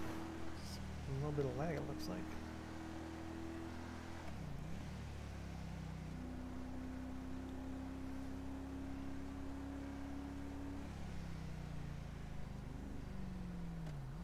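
A car engine hums steadily while driving, shifting pitch as it changes gear.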